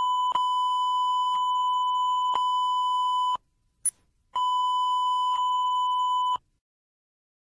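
A sharp click ticks once every second.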